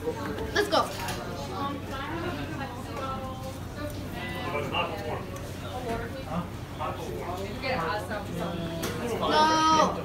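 A boy tears a slice of pizza.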